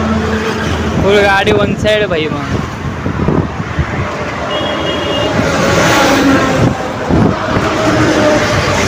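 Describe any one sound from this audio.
Men talk loudly close by, outdoors.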